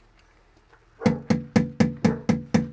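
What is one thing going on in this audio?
A man knocks loudly and rapidly on a door.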